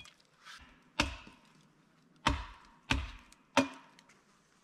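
A heavy wooden post thuds against the ground.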